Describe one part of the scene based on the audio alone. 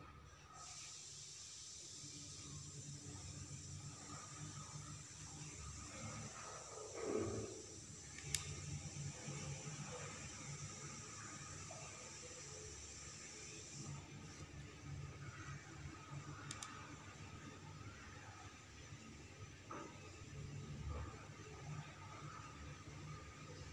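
Fingers press small stones onto paper.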